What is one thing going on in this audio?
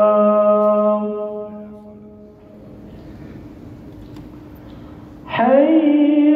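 A man chants a long, drawn-out call through a loudspeaker, echoing in a large hall.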